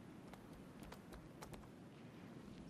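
Footsteps tap lightly on a wooden floor.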